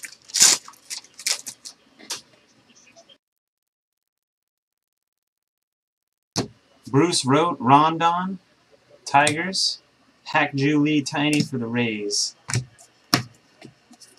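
Trading cards slap and flick against each other as they are shuffled.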